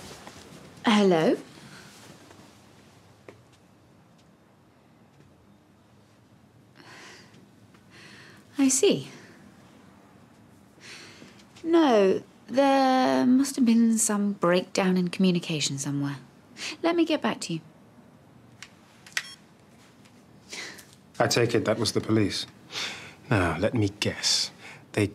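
A young woman speaks quietly and tensely on a phone.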